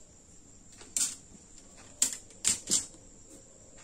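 Plastic rulers clack against a table.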